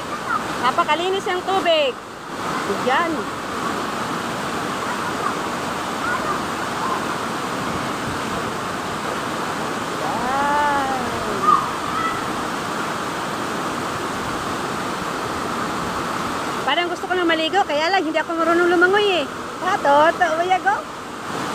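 A waterfall roars steadily outdoors.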